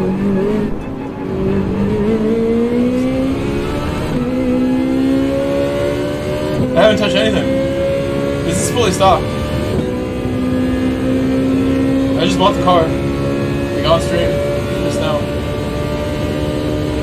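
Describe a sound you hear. A racing car engine drones steadily, rising in pitch as it speeds up and dropping briefly at each gear change.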